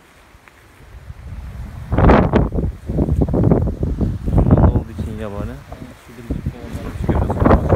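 Wind blows in strong gusts through trees and bushes outdoors.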